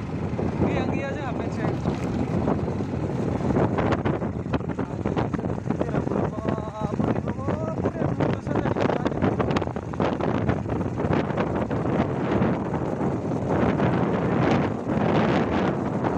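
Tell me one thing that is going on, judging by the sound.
Wind roars loudly over a microphone on a moving motorcycle.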